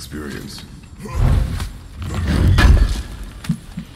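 A heavy lid thuds open.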